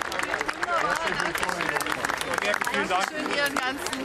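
A small crowd claps hands.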